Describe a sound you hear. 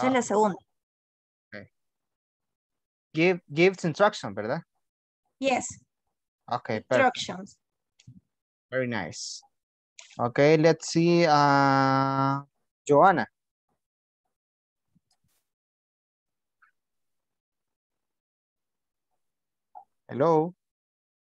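A woman speaks with animation over an online call, with long pauses.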